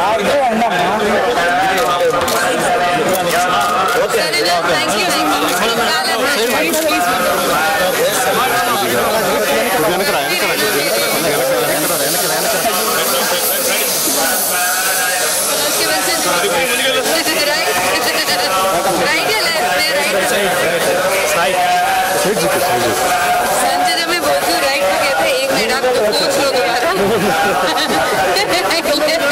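A crowd of men and women chatters close by outdoors.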